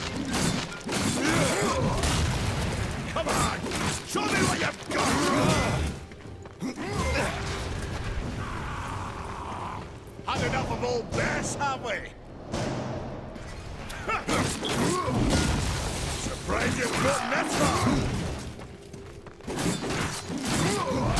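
Metal blades clang and strike in a fight.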